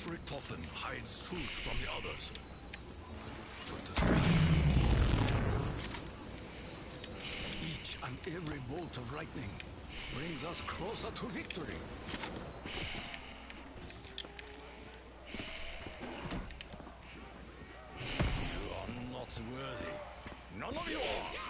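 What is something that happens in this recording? Electric bolts crackle and zap from a weapon.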